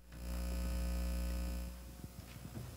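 A keyboard holds a sustained chord that then stops.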